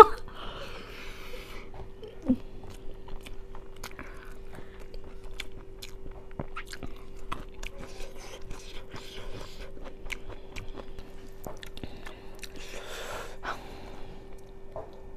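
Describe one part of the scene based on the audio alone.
A young woman chews food noisily and smacks her lips close to a microphone.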